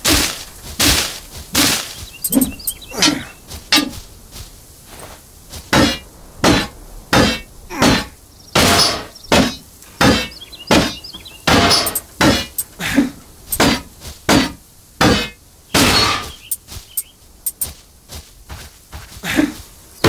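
A weapon strikes creatures with repeated sharp, heavy hits.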